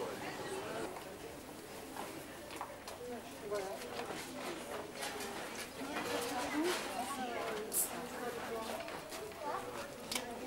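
Men and women chatter casually nearby outdoors.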